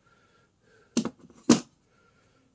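A metal part knocks against a metal table.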